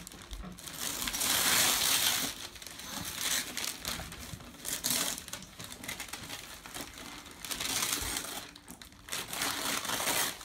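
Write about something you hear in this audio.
Wrapping paper rustles and tears as a present is unwrapped.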